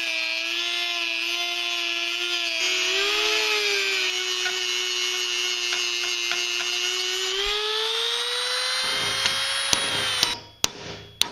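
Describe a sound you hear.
A rotary tool whines at high speed as it grinds metal.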